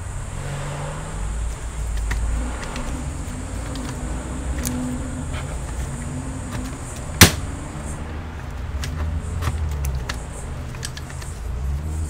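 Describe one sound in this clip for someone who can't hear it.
Metal parts click and tap softly.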